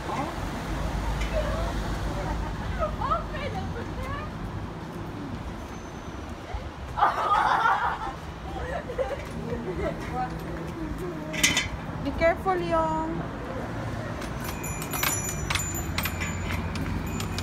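Men and women talk casually nearby outdoors.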